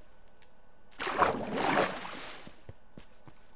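Water splashes as something plunges in.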